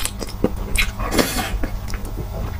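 A young man bites into crunchy grilled food, close to a microphone.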